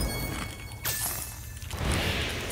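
Sparkling magic chimes ring out as a dragon attacks.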